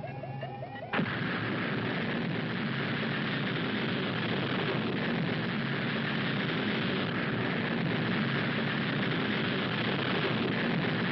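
Rocket engines ignite and roar with a loud, steady rumble.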